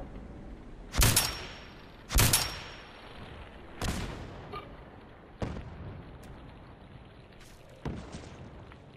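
A rifle fires single loud shots that echo outdoors.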